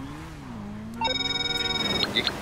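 A phone rings with a high electronic tone.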